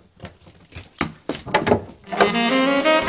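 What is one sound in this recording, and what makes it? A door handle clicks and rattles.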